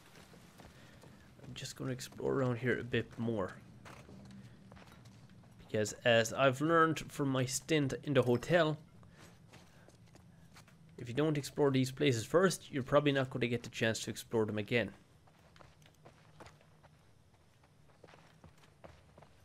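Footsteps tread slowly on a hard floor indoors.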